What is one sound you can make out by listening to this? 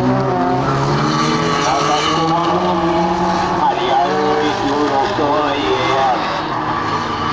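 Several racing car engines roar and rev from a distance.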